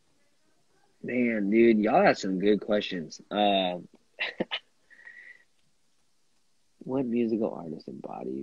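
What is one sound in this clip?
A young man talks with animation over an online call.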